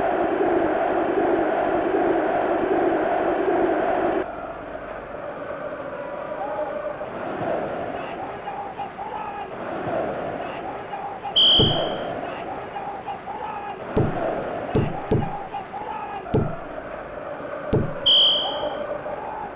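A crowd roars steadily.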